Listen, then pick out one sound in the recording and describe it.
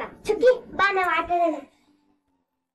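A young child's voice calls out briefly.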